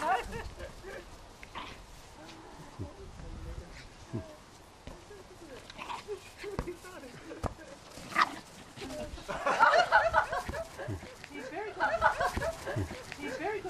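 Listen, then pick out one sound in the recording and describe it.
A small dog pushes a plastic ball that bumps across grass.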